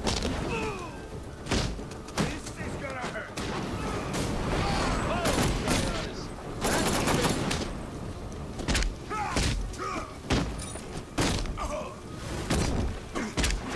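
Punches and kicks land with heavy thuds again and again.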